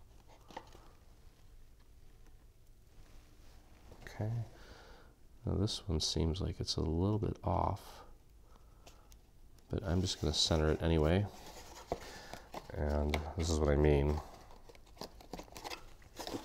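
Stiff paper rustles and crinkles as it is folded and pressed.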